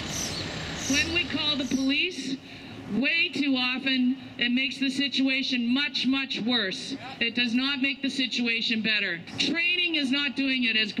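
A woman shouts loudly into a megaphone outdoors.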